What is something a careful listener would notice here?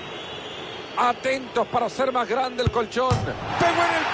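A football is struck with a dull thud.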